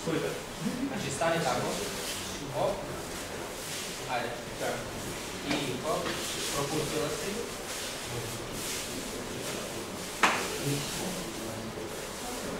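A man calls out instructions in a large echoing hall.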